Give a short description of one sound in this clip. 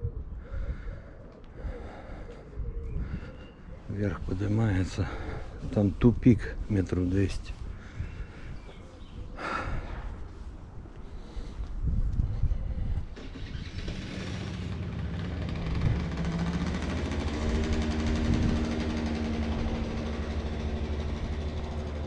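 Footsteps scuff along an asphalt street.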